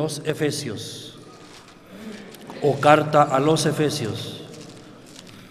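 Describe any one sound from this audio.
An elderly man speaks calmly into a microphone over loudspeakers in a large echoing hall.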